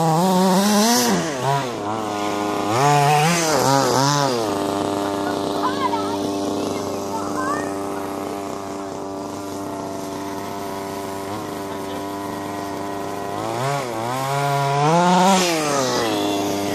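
A small model car engine whines and revs up and down loudly.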